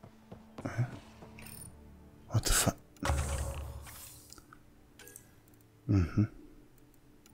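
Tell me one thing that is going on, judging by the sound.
Soft electronic whooshes and chimes sound as menu selections change.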